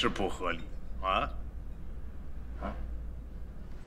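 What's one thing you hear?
Another man responds briefly with animation.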